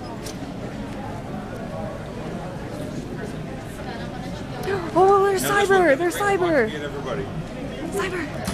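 A crowd murmurs in a large indoor hall.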